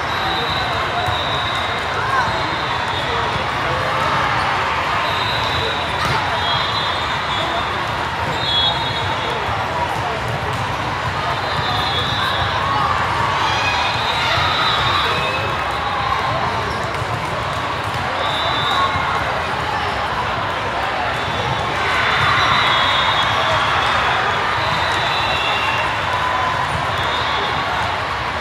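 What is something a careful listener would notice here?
Shoes squeak sharply on a hard court.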